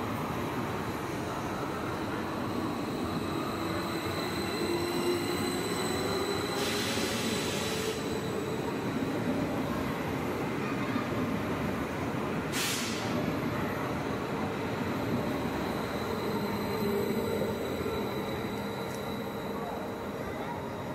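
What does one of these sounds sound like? A train rumbles and hums steadily past on the rails.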